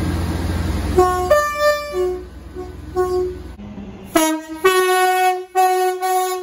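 A train horn blasts loudly and long nearby.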